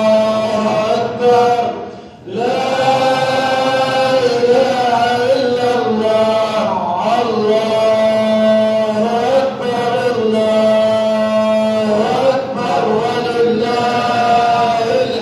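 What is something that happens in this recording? A man chants in a long, drawn-out voice through a loudspeaker in a large echoing hall.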